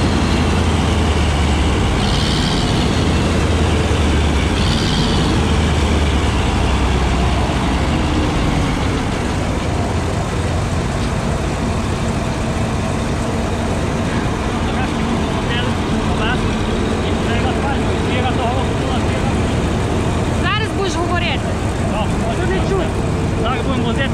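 A combine harvester engine rumbles steadily close by.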